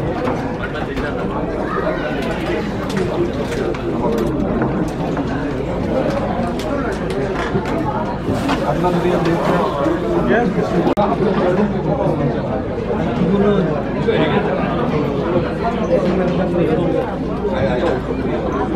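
A crowd of men and women chatters loudly throughout a large echoing hall.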